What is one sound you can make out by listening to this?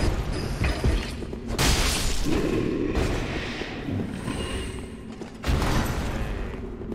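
Metal weapons clash and clang loudly.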